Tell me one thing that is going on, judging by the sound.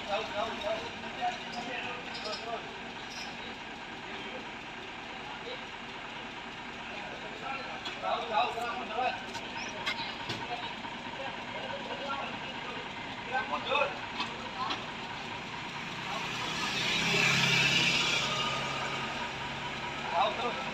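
A truck engine idles with a low rumble and briefly revs louder.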